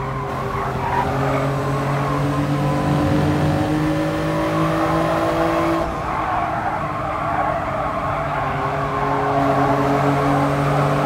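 Tyres screech on the track through the corners.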